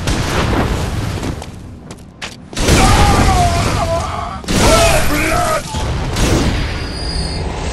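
Blades slash and clash in a fight.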